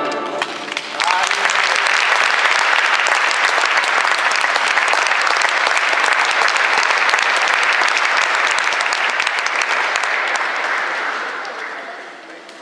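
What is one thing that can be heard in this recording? An audience applauds loudly in an echoing hall.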